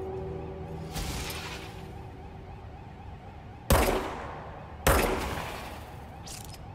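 A pistol fires sharp shots that echo down a hallway.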